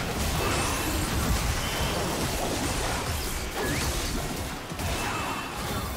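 Magic blasts and impact sound effects crackle and boom during a video game battle.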